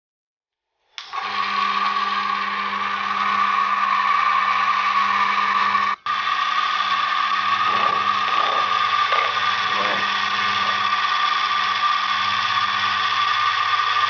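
An electric motor whirs steadily.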